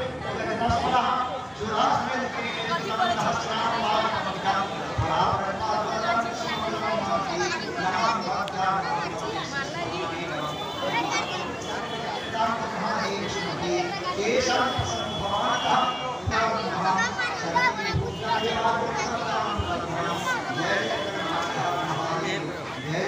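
An elderly man chants prayers aloud.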